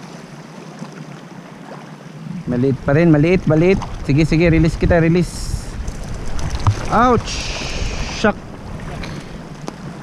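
Water laps against rocks.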